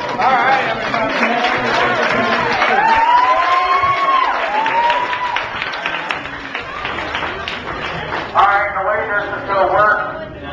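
A crowd of adults and children chatters and shouts excitedly nearby.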